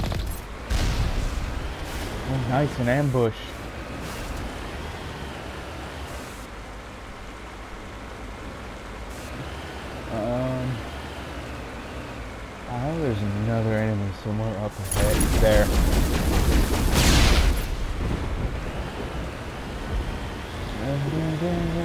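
Water splashes and sprays under heavy wheels.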